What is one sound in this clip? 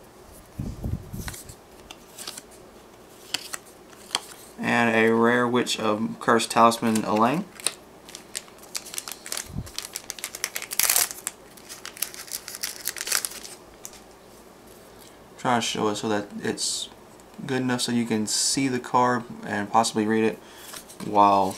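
Playing cards flick and rustle as hands sort through them.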